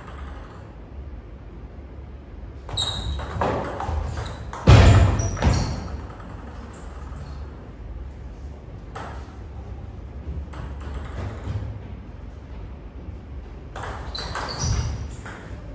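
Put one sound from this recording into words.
A table tennis ball clicks back and forth off paddles and the table in a rally.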